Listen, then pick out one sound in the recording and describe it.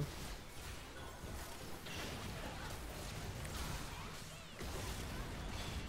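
Magic spells whoosh and burst in a video game.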